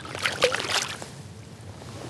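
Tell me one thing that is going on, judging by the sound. A paddle splashes and drips in water.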